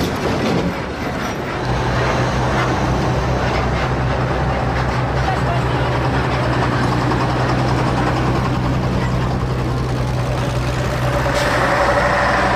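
Heavy vehicle engines rumble and drone steadily as a convoy rolls past close by.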